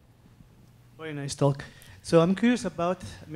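A man speaks into a microphone, asking a question.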